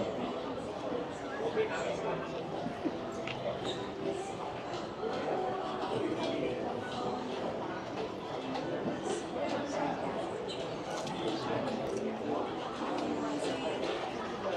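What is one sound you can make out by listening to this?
A crowd of shoppers chatters throughout a busy indoor hall.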